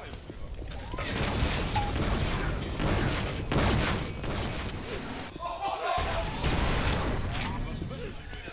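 Gunfire blasts and explosions boom in a video game.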